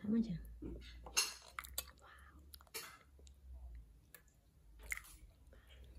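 A metal spoon scrapes and clinks against a ceramic bowl.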